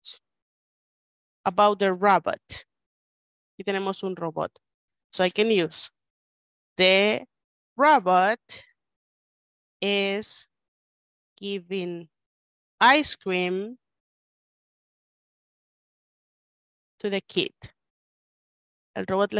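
A woman speaks slowly and clearly over an online call, pausing between phrases.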